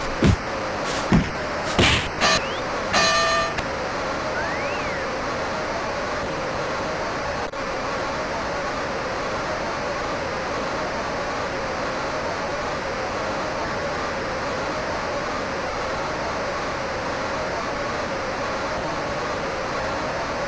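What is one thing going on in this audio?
A crowd roars steadily.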